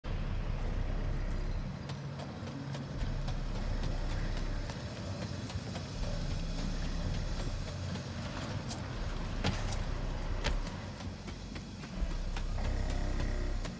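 Footsteps clank quickly on a metal floor.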